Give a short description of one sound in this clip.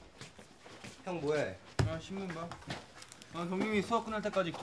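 A young man speaks casually.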